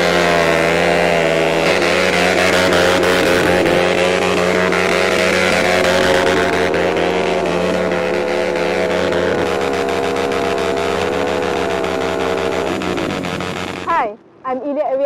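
A motorcycle engine roars and revs loudly.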